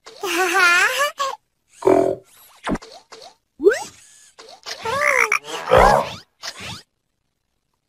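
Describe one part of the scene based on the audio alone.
A cartoon robot speaks in a deep, animated voice.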